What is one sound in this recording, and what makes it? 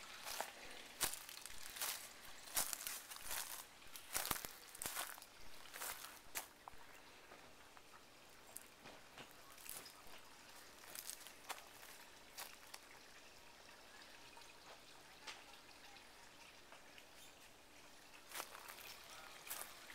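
Leaves and twigs rustle and crackle close by.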